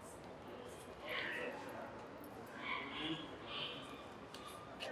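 Women talk quietly at a distance.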